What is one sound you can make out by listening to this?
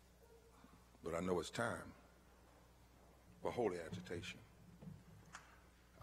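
A man speaks slowly and forcefully into a microphone, with pauses.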